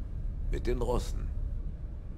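A middle-aged man speaks in a low, calm voice, close by.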